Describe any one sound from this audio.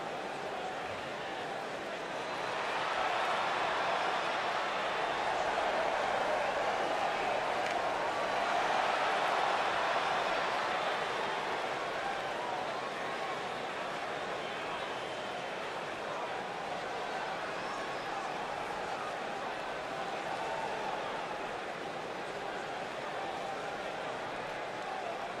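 A large crowd cheers and roars in an indoor arena.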